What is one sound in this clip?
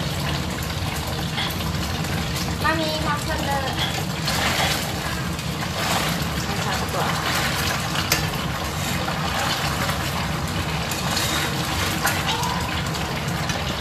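Oil sizzles and bubbles steadily in a pan.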